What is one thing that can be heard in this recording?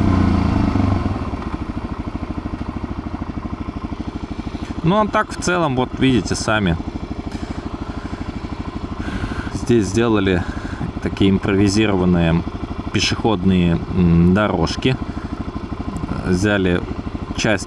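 A single-cylinder dual-sport motorcycle idles.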